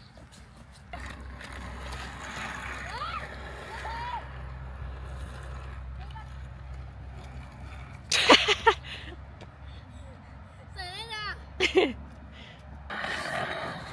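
Skateboard wheels rumble steadily over asphalt.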